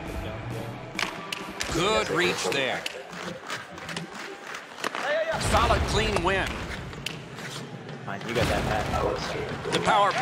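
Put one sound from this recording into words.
Hockey sticks knock a puck with sharp clacks.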